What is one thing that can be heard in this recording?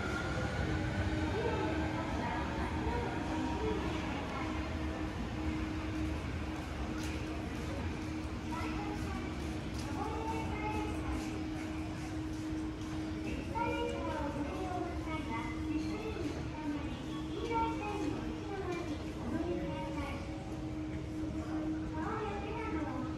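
A stopped train hums steadily in a large echoing hall.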